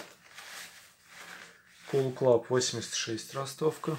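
A zipper is pulled open.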